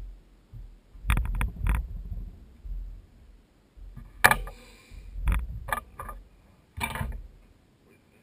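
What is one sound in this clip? Small objects click and rustle as a man handles them.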